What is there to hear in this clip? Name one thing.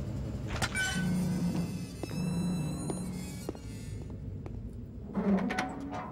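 A heavy metal door creaks as it swings.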